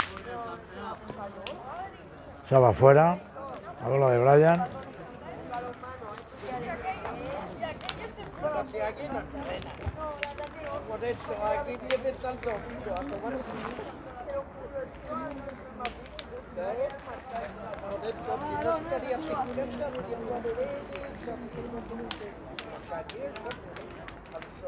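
Several people talk and call out outdoors.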